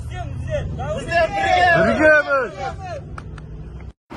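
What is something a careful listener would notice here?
A crowd of men shouts together outdoors.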